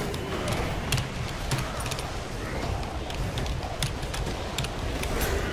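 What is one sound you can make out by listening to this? Sharp game sound effects clatter and chime.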